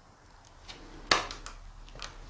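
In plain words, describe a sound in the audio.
A door latch clicks sharply.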